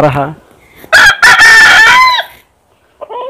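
A rooster crows loudly.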